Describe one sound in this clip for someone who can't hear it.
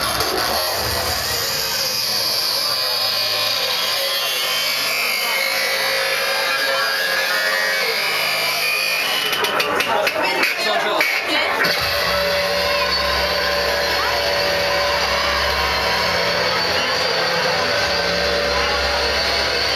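Loud electronic dance music plays through big speakers.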